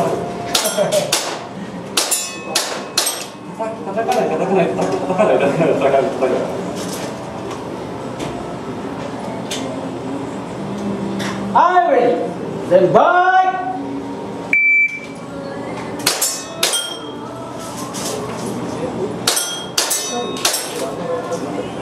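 A toy gun fires sharp, snapping shots in quick bursts.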